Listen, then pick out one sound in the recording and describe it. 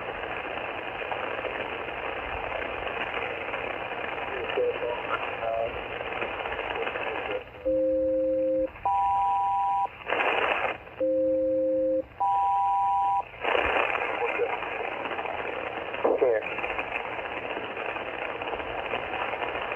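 Static hisses steadily from a radio receiver.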